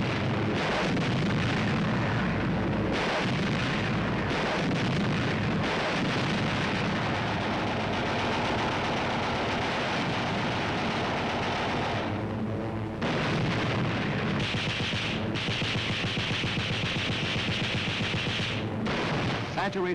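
Propeller aircraft engines roar as planes fly low overhead.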